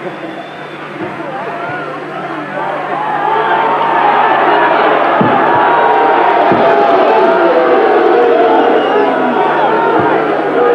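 Gloved punches thud against a body.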